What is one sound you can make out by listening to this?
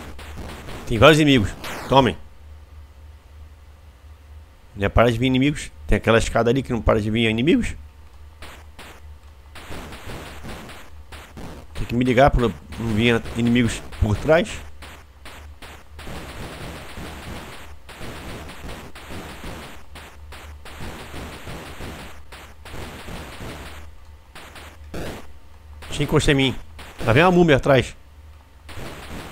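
Electronic video game sound effects beep and buzz.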